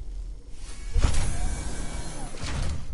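A flamethrower whooshes and roars.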